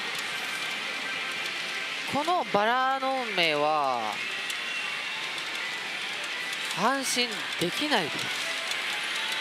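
Pachinko machines clatter and chime steadily all around.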